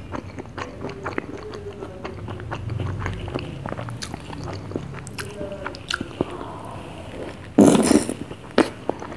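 A spoon scrapes and clinks against a glass.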